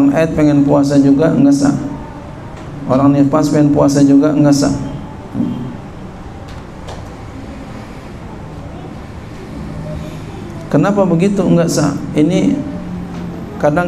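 A man speaks calmly into a microphone, heard through a loudspeaker, with pauses between phrases.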